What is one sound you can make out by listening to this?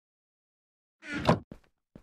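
A wooden chest creaks shut.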